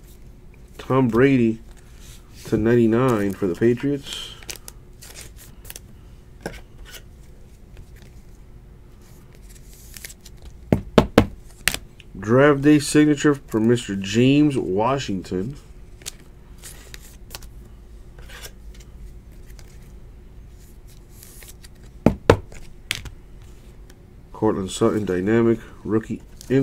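Trading cards rustle and tap softly as hands handle them.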